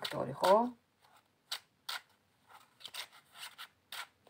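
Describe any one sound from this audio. Playing cards flick and snap as they are shuffled.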